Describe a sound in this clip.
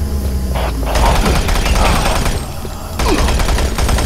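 A monster growls and snarls.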